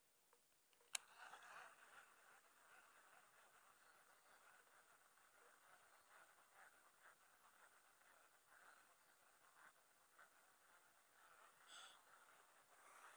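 A baitcasting reel whirs as its handle is cranked to reel in line.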